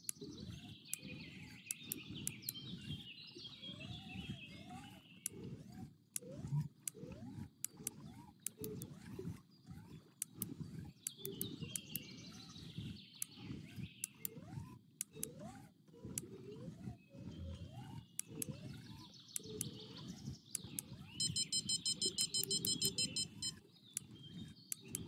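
A fishing reel clicks and whirs as line is wound in.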